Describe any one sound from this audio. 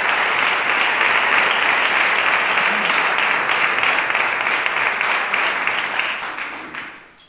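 A crowd applauds steadily, then the clapping fades away.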